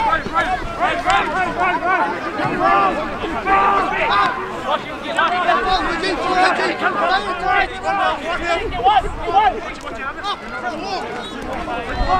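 Spectators cheer and call out from the sideline.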